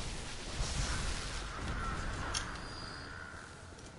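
Electric crackling bursts loudly.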